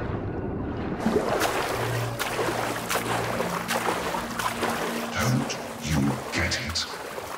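Water laps and sloshes around a swimmer.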